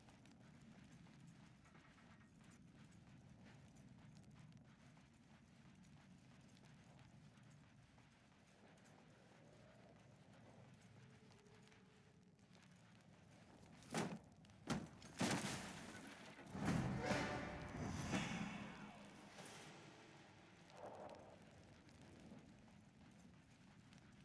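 Footsteps run on a dirt floor.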